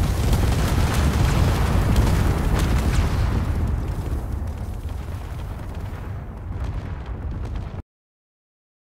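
A blast roars with a deep, rumbling hiss and slowly dies away.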